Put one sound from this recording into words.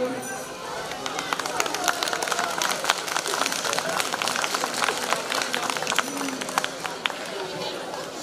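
A crowd claps and chatters outdoors.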